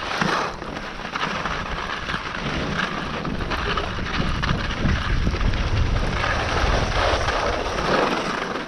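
Skis scrape and hiss over snow.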